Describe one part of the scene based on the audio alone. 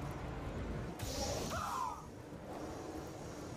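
A lightsaber ignites with a crackling hiss.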